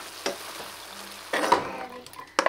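Ground meat sizzles in a hot pan.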